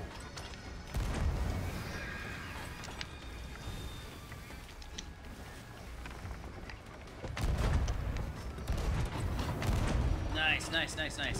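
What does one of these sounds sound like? A cannon fires with loud, deep booms.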